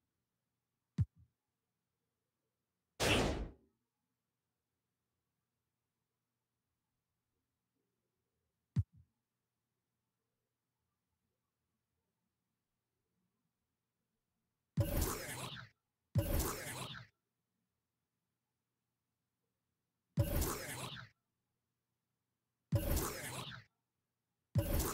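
Short whooshing menu sounds play as menus change.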